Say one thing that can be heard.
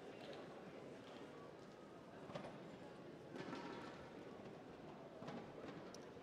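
A man talks quietly in a large echoing hall.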